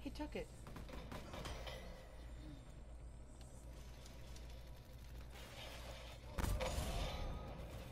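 Guns fire in short bursts.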